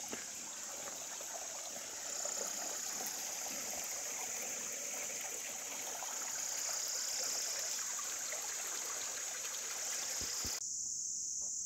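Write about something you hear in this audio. Water trickles gently over stones.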